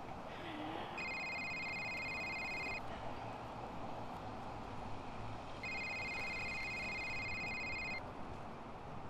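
A mobile phone rings with a chiming tone.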